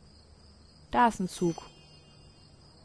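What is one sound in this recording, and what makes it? A bright magical chime sparkles.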